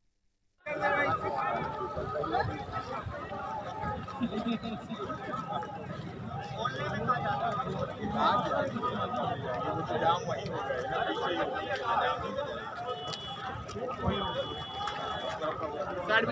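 A crowd of men talks and murmurs outdoors.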